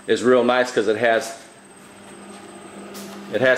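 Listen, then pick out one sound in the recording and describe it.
A refrigerator door is pulled open.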